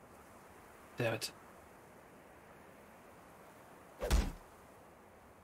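Blades strike in a short fight.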